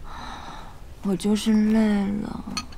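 A young woman answers in a tired, weary voice.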